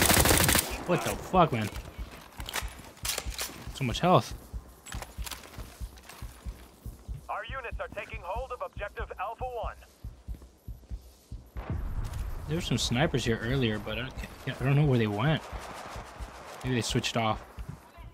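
A single rifle shot cracks.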